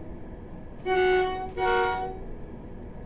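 A train horn blares twice in short blasts.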